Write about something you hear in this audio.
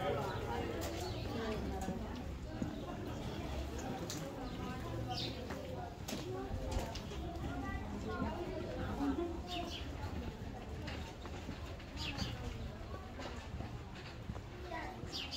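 Several adults chat nearby outdoors.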